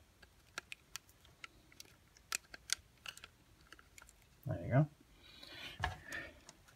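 Small plastic parts click and tap as they are handled up close.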